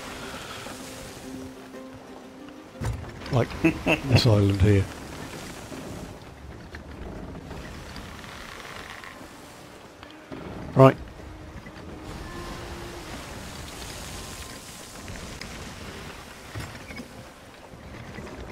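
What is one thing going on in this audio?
Waves rush and splash around a sailing ship.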